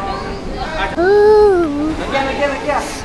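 A young child squeals in a high voice.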